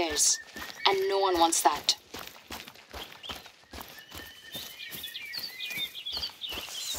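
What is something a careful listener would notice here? Footsteps crunch steadily on dry dirt and grass.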